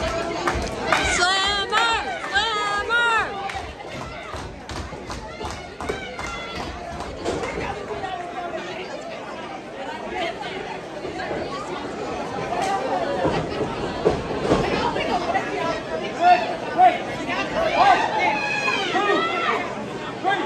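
A woman shouts loudly from ringside.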